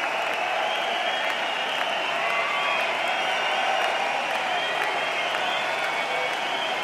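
A large crowd cheers and screams loudly in a vast echoing arena.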